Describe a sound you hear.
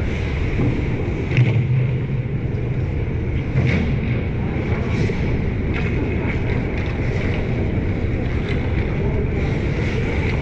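Skates scrape on ice in a large echoing arena.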